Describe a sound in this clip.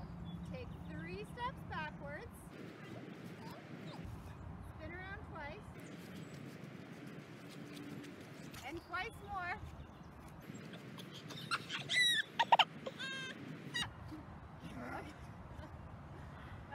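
A young woman gives directions from a few steps away.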